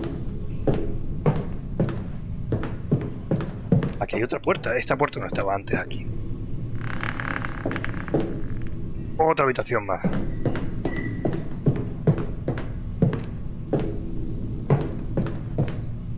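Slow footsteps thud on a hard floor.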